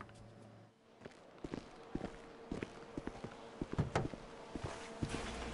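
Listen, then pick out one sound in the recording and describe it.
Footsteps tap on a stone path.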